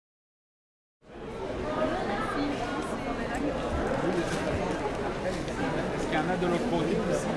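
A crowd chatters in a busy, bustling space.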